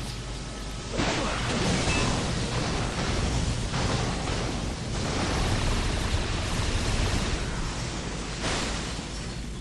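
Explosions rumble and roar.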